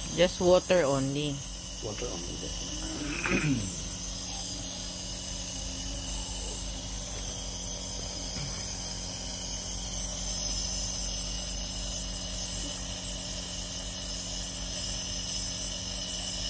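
A nebulizer hums and hisses steadily close by.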